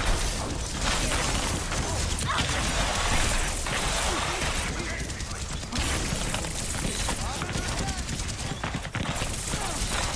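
Twin pistols fire in rapid bursts.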